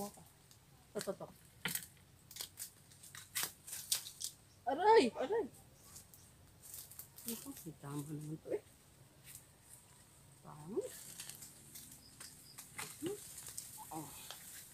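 Leaves rustle and twigs snap close by.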